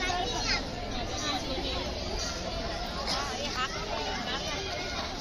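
A large crowd of women chatter all around.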